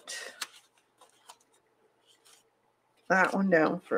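Paper rustles and crinkles softly as hands handle it.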